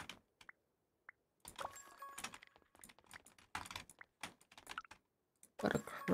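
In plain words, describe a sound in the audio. Soft clicks tick as menu items are picked.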